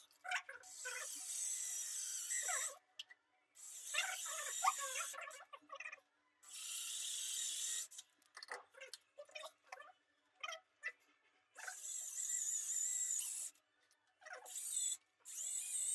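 A cordless drill whirs in bursts, boring into stone.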